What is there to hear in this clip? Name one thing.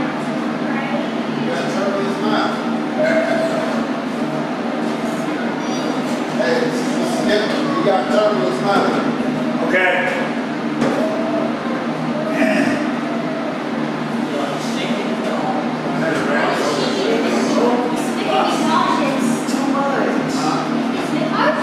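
Several young people and adults talk casually at a distance in an echoing room.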